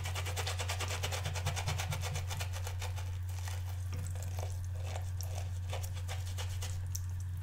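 Water trickles from a tap into a sink.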